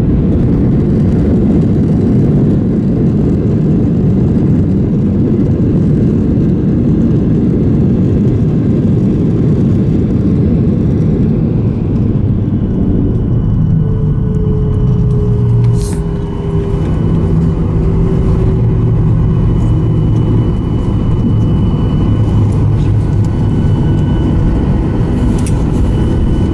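Jet engines roar loudly and steadily while an airliner rolls along a runway.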